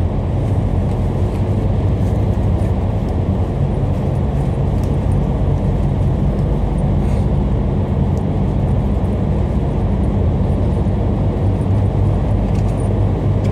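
Traffic roars steadily in an echoing tunnel.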